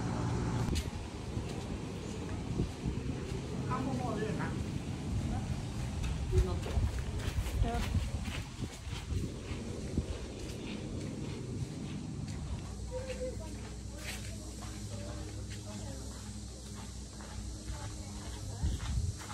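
Footsteps crunch on a rough path close by.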